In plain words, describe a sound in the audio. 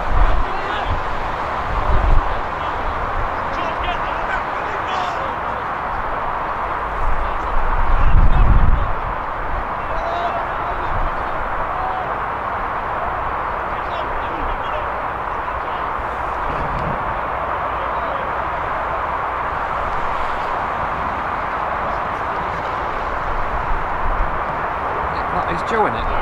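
Young players shout to each other in the distance on an open field.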